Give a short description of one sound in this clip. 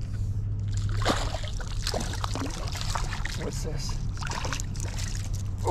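A fish splashes in the water close by.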